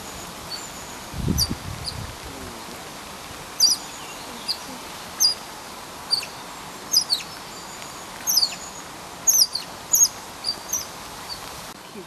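An otter chirps and squeaks in short high calls, over and over.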